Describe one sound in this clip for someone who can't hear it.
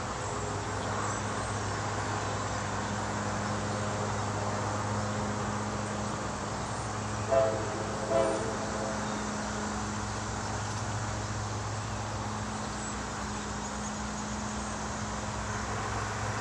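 A diesel locomotive engine rumbles steadily as a train approaches.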